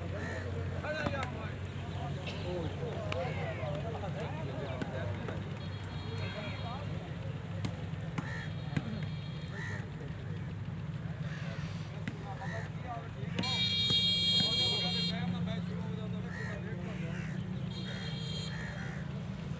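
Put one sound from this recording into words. A ball thuds as players hit it.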